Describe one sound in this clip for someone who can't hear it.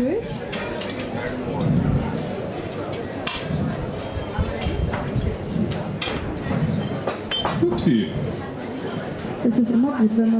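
Metal utensils clink against pots and bowls.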